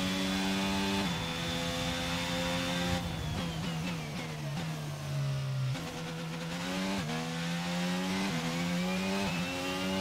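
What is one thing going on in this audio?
Gears shift with sudden jumps in the engine's pitch.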